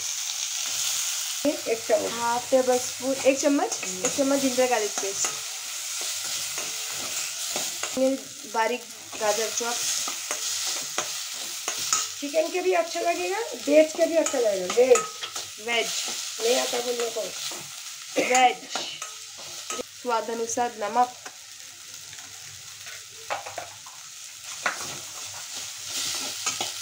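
Food sizzles gently in a hot pan.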